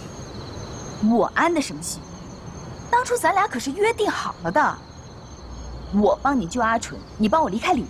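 A young woman speaks softly and pleadingly, close by.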